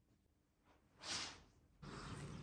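Curtains swish as they are pulled open.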